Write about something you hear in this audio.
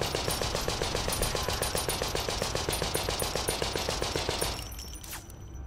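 Rapid automatic gunfire rattles.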